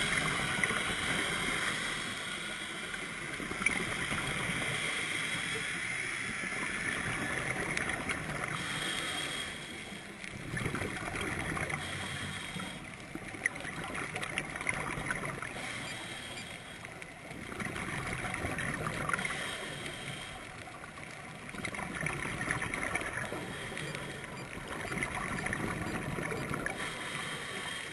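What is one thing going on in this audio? A diver breathes slowly through a regulator underwater.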